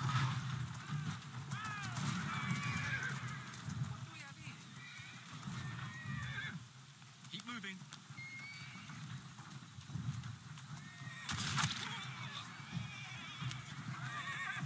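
A horse-drawn carriage rumbles along a street with clopping hooves.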